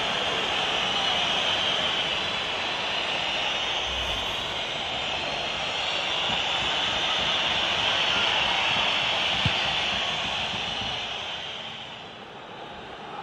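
A large crowd cheers and roars loudly, then quiets down.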